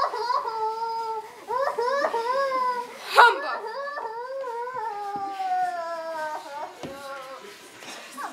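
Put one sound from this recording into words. A group of teenagers sings together in an echoing hall.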